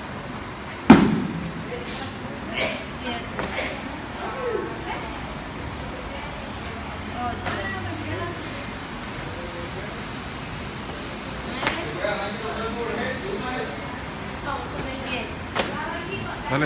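A woman's feet land with thumps on a rubber floor.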